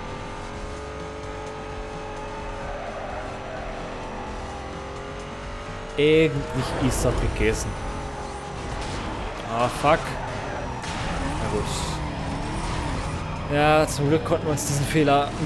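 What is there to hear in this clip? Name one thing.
A car engine roars at high revs.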